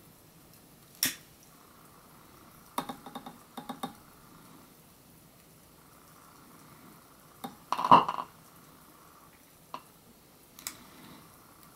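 A lighter clicks sharply several times.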